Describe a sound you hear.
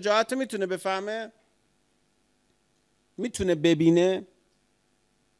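A man speaks calmly into a microphone, close by, in short phrases.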